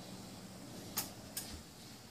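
A light switch clicks.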